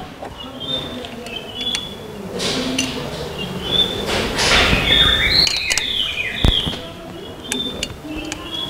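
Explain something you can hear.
Metal tools click and clink against an engine part.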